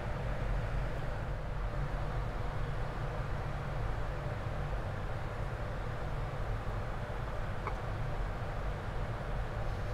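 Jet engines roar steadily in a cockpit.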